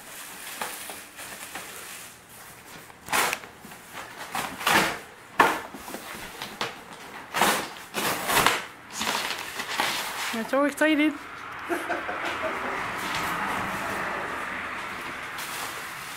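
Plastic wrapping crinkles and rustles.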